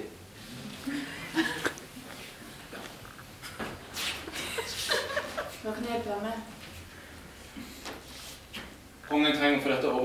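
A young woman speaks on a stage, heard from the audience.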